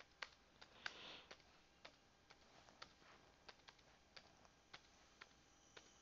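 Keyboard keys click one by one as someone types.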